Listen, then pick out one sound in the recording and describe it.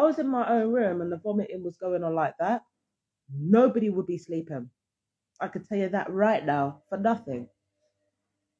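A woman speaks close up.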